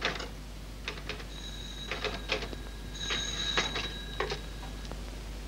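A typewriter clacks in quick bursts of keystrokes.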